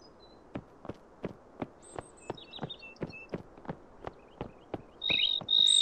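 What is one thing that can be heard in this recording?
Footsteps thud quickly on soft ground.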